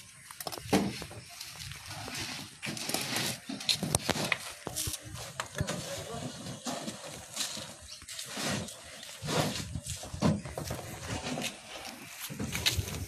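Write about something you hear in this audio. Several men talk nearby outdoors, their voices overlapping.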